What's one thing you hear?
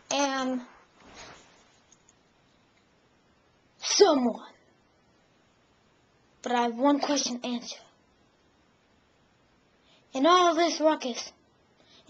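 A teenage boy speaks close up in short bursts, with pauses between.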